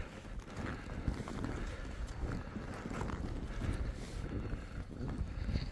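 Wind rushes past a microphone.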